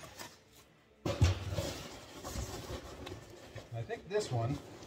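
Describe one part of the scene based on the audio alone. Packing paper and cardboard rustle.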